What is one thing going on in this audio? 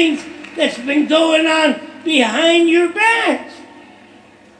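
An elderly man speaks forcefully into a microphone, echoing in a large hall.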